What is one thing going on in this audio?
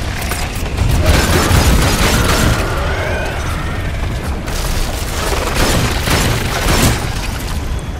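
A loud explosion booms and rocks crash apart.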